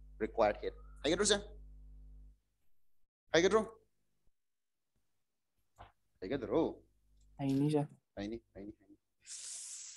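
A young man speaks with animation into a close headset microphone.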